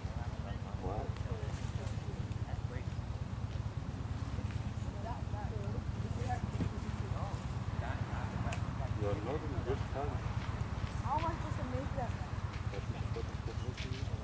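Men talk and call out across an open field at a distance.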